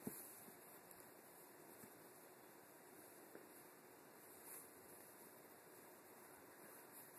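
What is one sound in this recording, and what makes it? A small glass object clicks softly as fingers handle it.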